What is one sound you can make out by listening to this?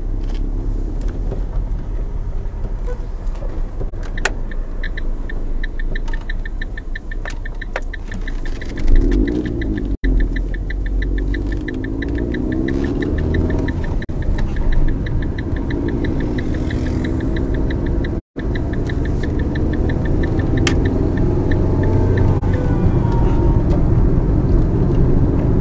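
Tyres roll over the road with a low rumble.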